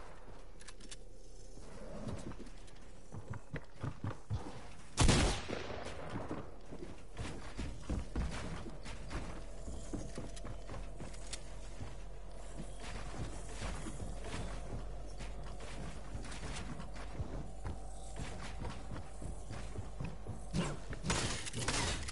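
Building pieces snap quickly into place with rapid clicks.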